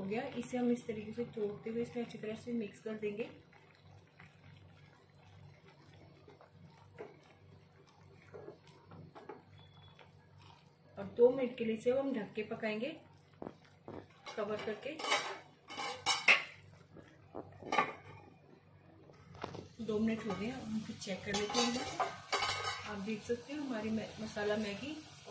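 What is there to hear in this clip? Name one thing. A silicone spatula stirs through wet noodles in a pan.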